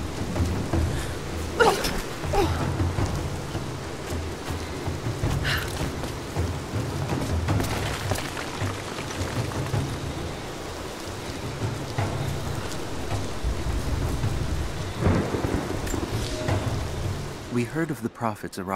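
Footsteps scrape and thud on stone.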